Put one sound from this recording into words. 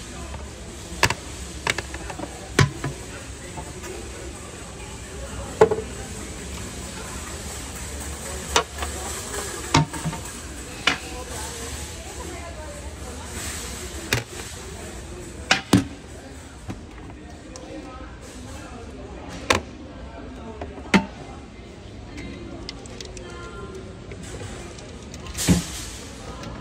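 A plastic toilet lid clacks shut and open again and again.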